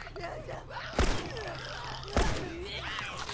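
A pistol fires sharp shots.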